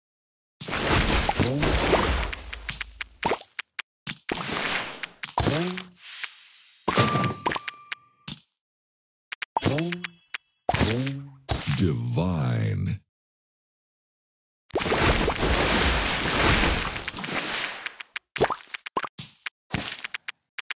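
Candies burst in a match-three game with chiming, sparkling sound effects.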